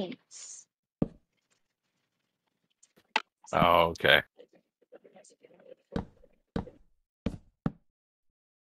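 Wooden blocks are placed with short, soft knocks.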